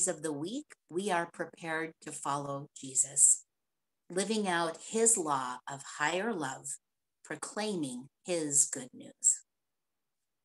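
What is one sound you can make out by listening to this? A man reads out calmly over an online call.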